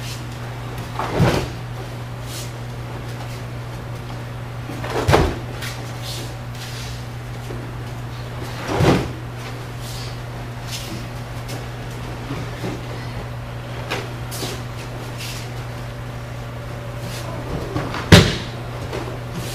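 Bodies thump heavily onto a padded mat, echoing a little in a large room.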